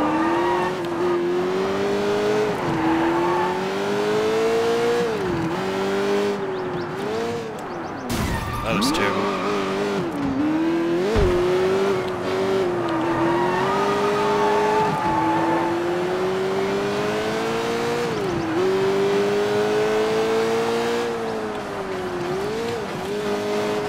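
A sports car engine roars at high revs, rising and dropping as the gears shift.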